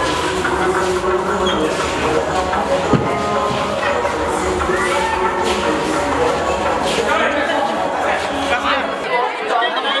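Several men talk nearby.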